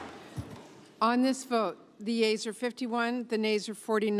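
An elderly woman speaks calmly and formally into a microphone in a large hall.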